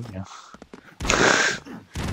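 Gunfire rattles in a quick burst.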